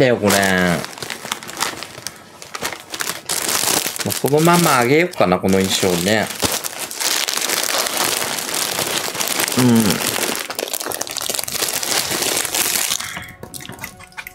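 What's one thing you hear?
Plastic packaging rustles and crinkles as it is handled.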